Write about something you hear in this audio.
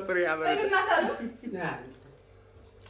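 A middle-aged woman laughs close by.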